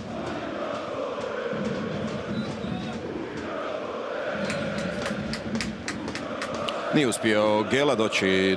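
A large stadium crowd roars in the open air.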